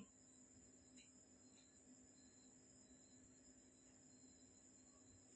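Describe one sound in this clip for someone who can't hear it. A small stick scrapes against a metal pan.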